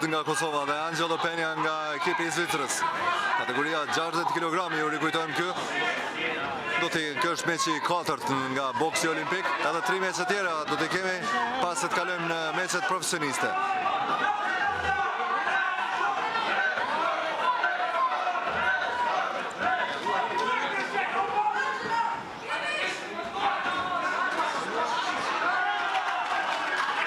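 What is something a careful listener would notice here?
A crowd talks and cheers in a large hall.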